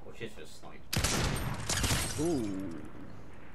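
A rifle shot cracks loudly.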